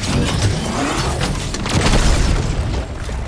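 Rapid gunfire bursts from a video game.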